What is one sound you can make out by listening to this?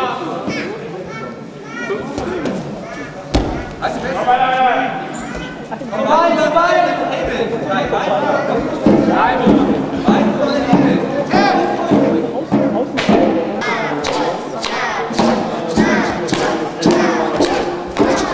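Young spectators shout and cheer in an echoing hall.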